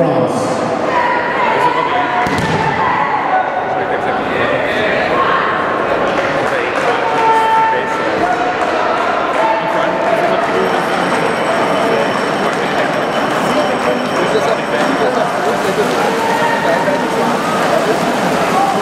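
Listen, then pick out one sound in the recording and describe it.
A large crowd cheers and shouts throughout a big echoing hall.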